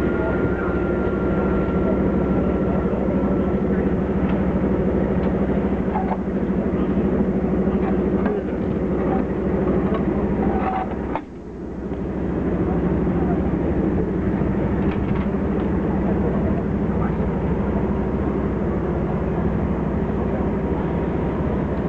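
A crowd of men talk among themselves nearby.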